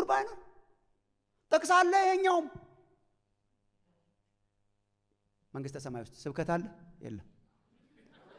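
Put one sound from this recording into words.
A middle-aged man preaches with animation through a microphone, in short bursts with pauses.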